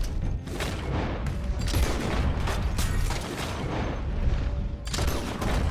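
A rifle fires in sharp cracks.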